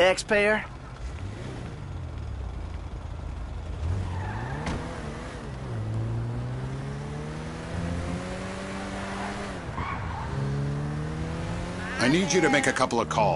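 A car engine revs and hums as the car drives off and speeds up.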